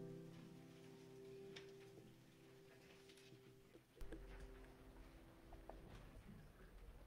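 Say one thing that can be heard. A piano plays soft held notes.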